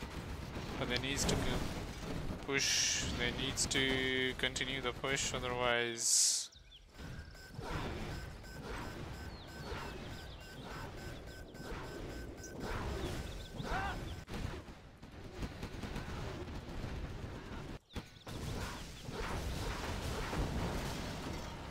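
Explosions boom in a battle.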